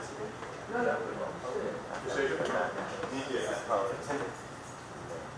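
An elderly woman reads aloud calmly, close by.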